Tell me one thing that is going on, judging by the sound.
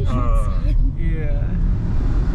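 A young man speaks cheerfully into a close microphone.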